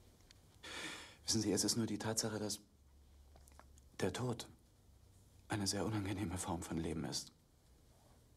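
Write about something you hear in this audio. A young man speaks softly and calmly nearby.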